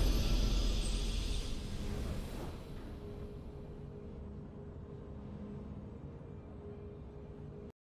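A triumphant victory fanfare rings out and slowly fades.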